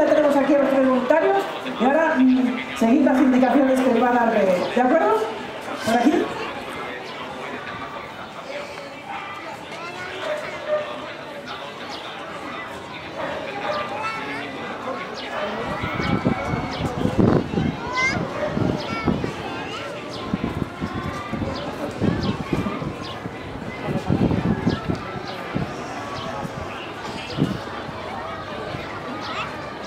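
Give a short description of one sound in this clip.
An audience of children murmurs and chatters nearby.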